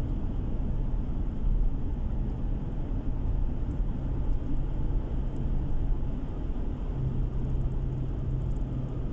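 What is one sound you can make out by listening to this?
Tyres roll on smooth asphalt with a low rumble.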